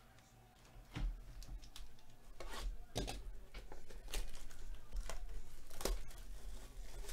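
A foil pack crinkles in hands.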